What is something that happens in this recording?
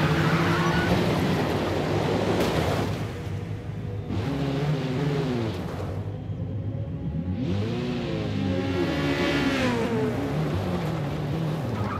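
Tyres scrape and crunch over gravel.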